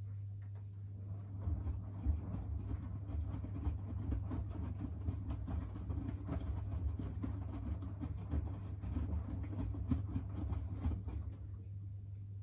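Laundry tumbles and sloshes in a washing machine drum.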